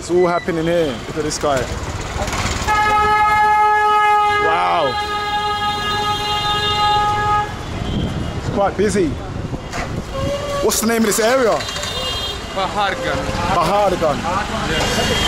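Traffic hums and scooters pass along a busy street.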